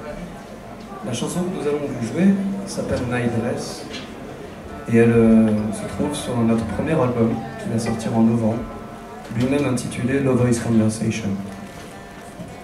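A man sings into a microphone over a loudspeaker system.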